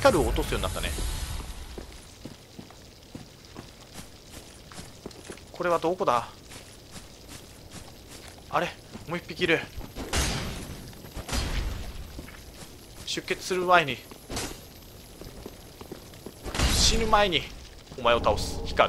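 Armoured footsteps tread on dirt and stone.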